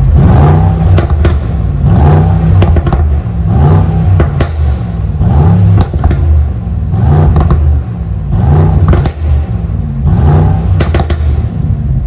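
A car exhaust crackles and pops sharply between revs.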